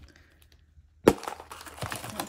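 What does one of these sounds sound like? A plastic capsule snaps open with a sharp click.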